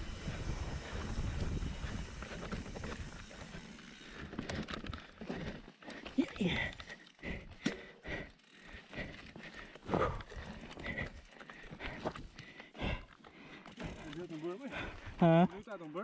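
Bicycle tyres roll and rattle over a rough dirt trail.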